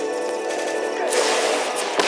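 A rocket launcher fires with a whoosh.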